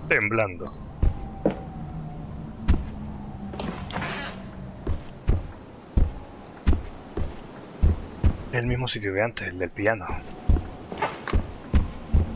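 Footsteps thud slowly and steadily.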